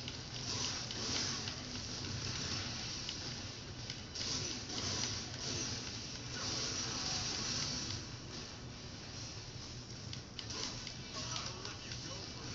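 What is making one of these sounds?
Sword slashes and clashing battle effects play loudly through a television speaker.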